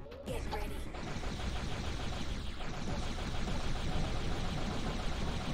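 Electronic game music and sound effects play steadily.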